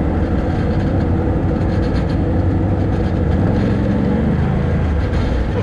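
An engine rumbles steadily close by.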